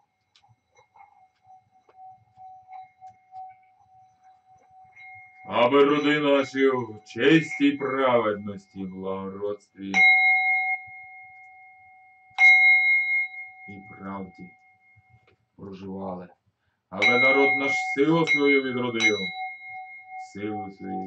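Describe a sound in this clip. A singing bowl rings with a steady humming tone.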